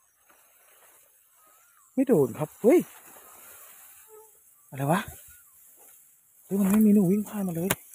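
Tall grass rustles as someone pushes through it.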